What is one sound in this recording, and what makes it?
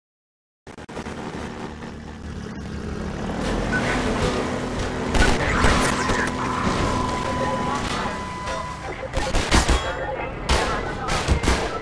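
A boat engine roars and echoes through a tunnel.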